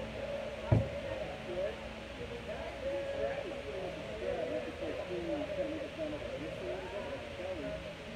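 An electric guitar plays softly through an amplifier outdoors.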